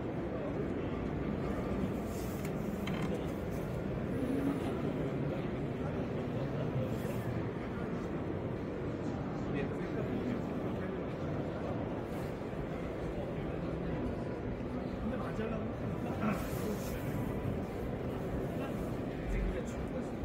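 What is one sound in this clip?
A crowd murmurs steadily throughout a large echoing hall.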